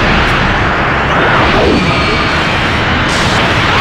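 Energy blasts whoosh and explode.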